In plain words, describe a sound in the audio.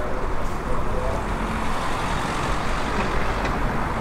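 A van drives past on a road.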